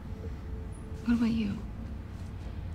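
A young woman asks a short question calmly, close by.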